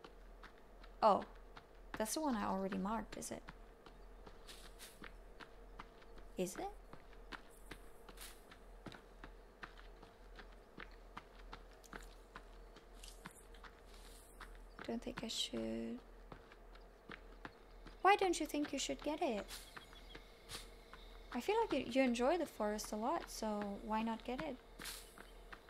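A young woman talks casually and close to a microphone, in short bursts.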